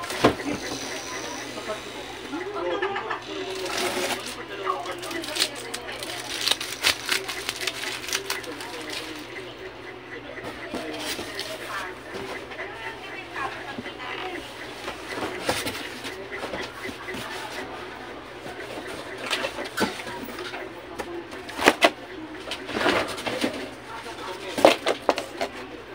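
Cardboard thumps and knocks as a man handles a box.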